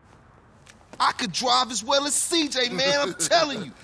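A young man talks with animation.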